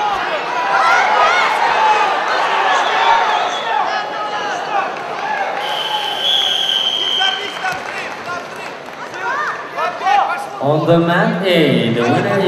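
A large crowd shouts and cheers in a big echoing hall.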